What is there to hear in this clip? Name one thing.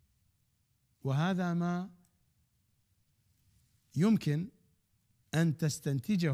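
A middle-aged man speaks with animation into a microphone, in short phrases with pauses.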